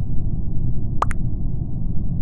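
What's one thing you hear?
A short electronic chime sounds once.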